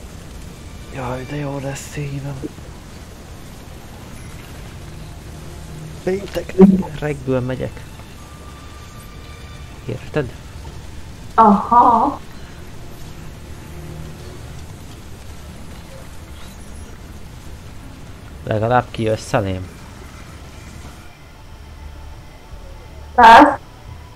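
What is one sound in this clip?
A young man speaks into a close microphone in short bursts with pauses between.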